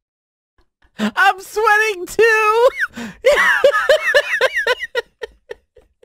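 A man laughs loudly into a close microphone.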